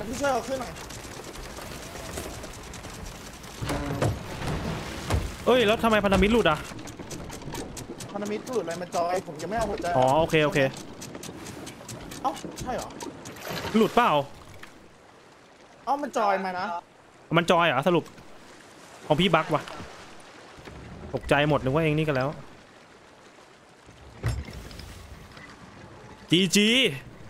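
Waves splash and roll against a wooden ship.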